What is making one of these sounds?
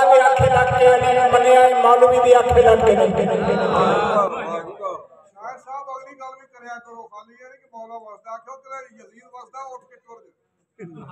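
A middle-aged man speaks with feeling into a microphone, heard through a loudspeaker.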